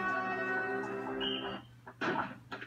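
Video game music plays from a television speaker.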